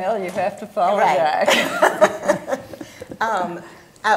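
An elderly woman laughs softly.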